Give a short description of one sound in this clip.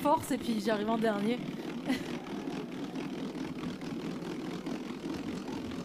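A hand-pumped kitchen spinner whirs steadily.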